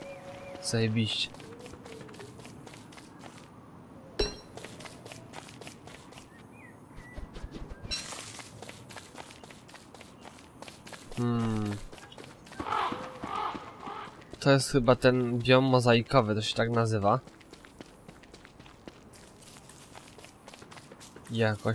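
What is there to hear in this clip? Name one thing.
Footsteps patter steadily on the ground.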